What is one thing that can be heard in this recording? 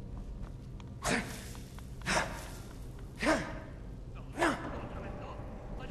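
A heavy weapon swishes and tears through thick cobwebs.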